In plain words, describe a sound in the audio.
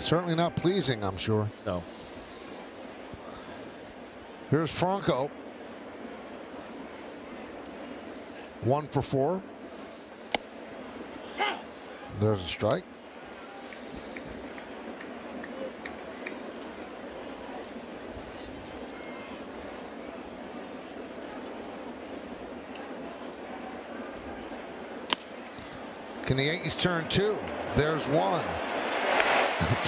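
A large stadium crowd murmurs steadily in the background.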